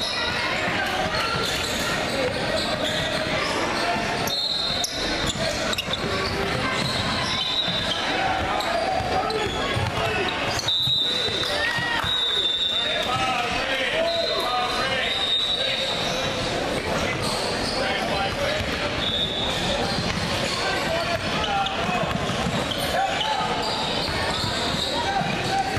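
A crowd of spectators chatters and calls out throughout.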